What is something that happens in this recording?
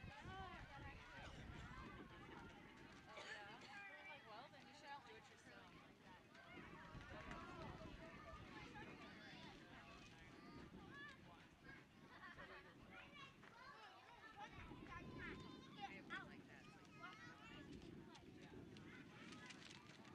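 Young women call out to each other across an open field outdoors.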